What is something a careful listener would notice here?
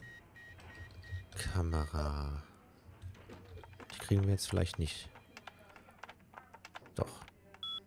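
Keys clack on a keyboard.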